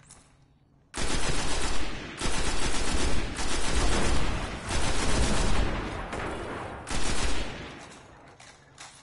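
Rapid gunfire blasts loudly in bursts.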